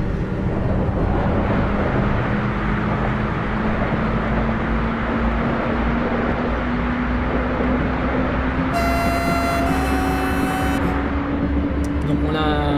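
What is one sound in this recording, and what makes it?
A passing freight train rushes by close alongside with a loud roar.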